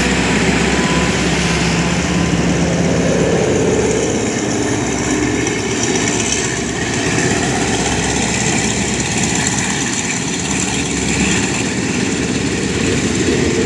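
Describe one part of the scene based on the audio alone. Train wheels clatter and squeal along the rails.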